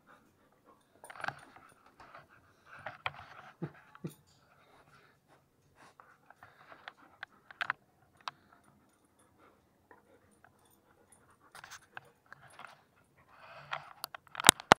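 A dog sniffs close by.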